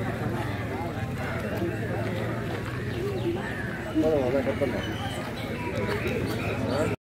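Several men talk at once nearby, outdoors.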